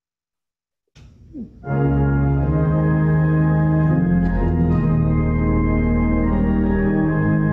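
A piano plays a slow tune, heard through an online call.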